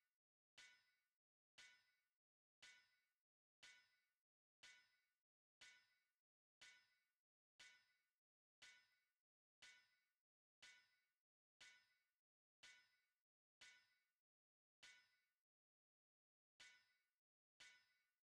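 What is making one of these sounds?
A crafting device gives a short, fading ringing chime about once a second.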